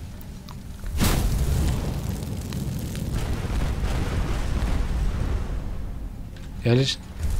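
A fire spell roars and crackles in a burst of flame.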